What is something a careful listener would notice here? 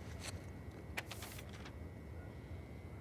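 A sheet of paper rustles as it is picked up.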